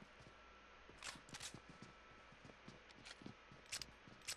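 Gunfire rings out in short, sharp bursts.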